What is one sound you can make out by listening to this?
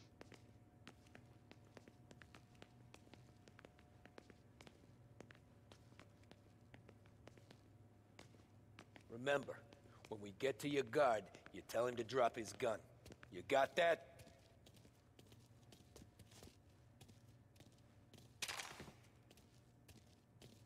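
Footsteps tread on a hard floor and stairs.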